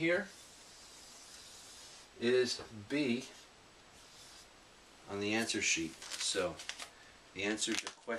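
A middle-aged man speaks calmly and close by, explaining.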